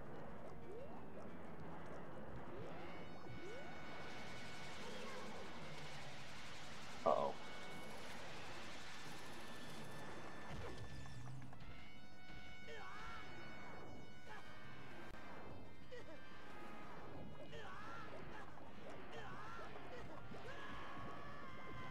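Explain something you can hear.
Electronic game music plays steadily.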